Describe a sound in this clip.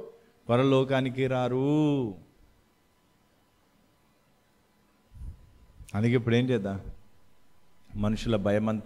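A man speaks calmly into a microphone, close up.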